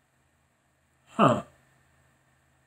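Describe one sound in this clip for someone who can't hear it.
A man lets out a short falling hum.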